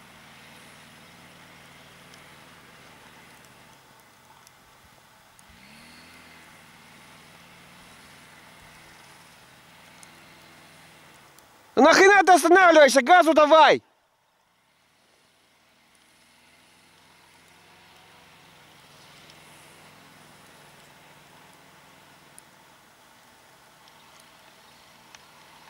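A snowmobile engine hums in the distance.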